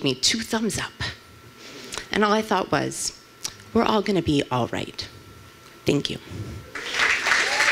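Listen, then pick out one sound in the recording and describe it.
A woman speaks with feeling into a microphone.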